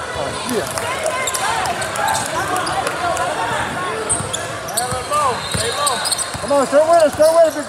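A basketball bounces on a hardwood floor, echoing in a large hall.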